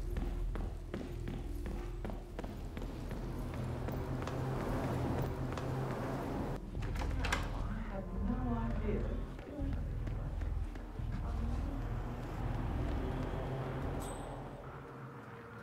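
Footsteps pad along a hard floor.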